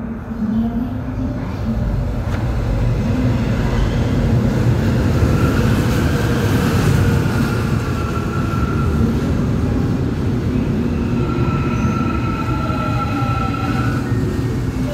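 A train approaches and rumbles past close by.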